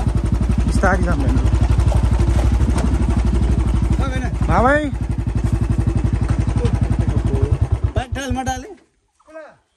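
A motorbike engine rumbles steadily, then cuts out.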